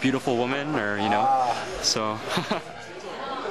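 A young man speaks cheerfully close by.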